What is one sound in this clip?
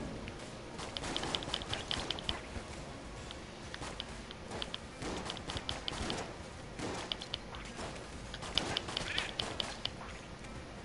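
Rapid video game gunshots pop in quick bursts.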